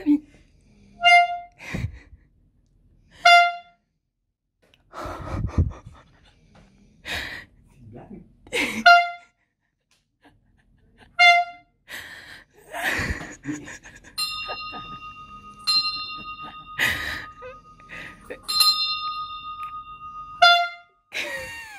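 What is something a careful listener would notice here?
An air horn blares in short, loud blasts.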